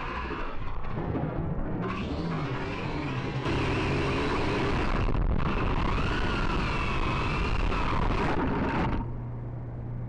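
A drone's motors whine loudly as it tumbles and levels out.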